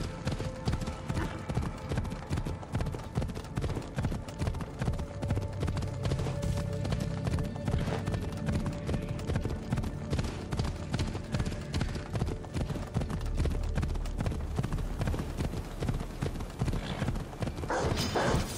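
Horse hooves pound rapidly on a dirt track.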